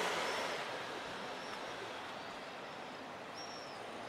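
A small car drives slowly over cobblestones nearby.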